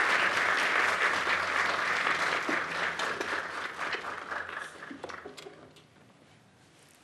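An audience applauds in a hall, and the clapping slowly dies away.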